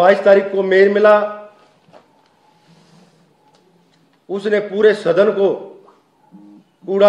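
A man speaks calmly and firmly into a microphone, with pauses.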